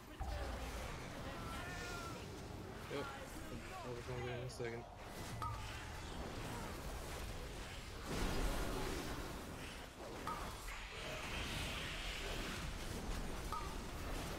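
Spell and combat effects crackle and boom steadily.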